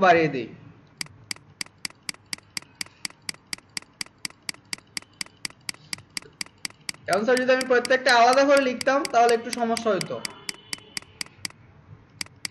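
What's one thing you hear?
A computer mouse clicks rapidly and evenly.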